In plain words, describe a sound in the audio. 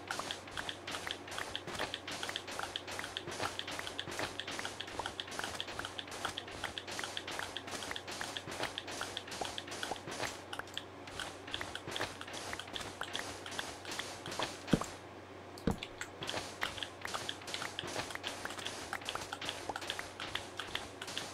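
Sand blocks crumble with rapid, scratchy digging taps.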